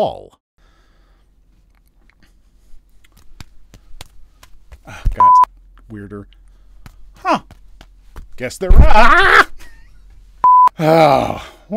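A man speaks close to a microphone in short bursts.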